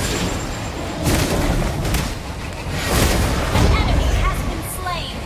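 Game spell effects burst and crackle.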